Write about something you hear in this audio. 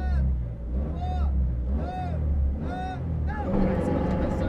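A rally car engine idles with a low rumble.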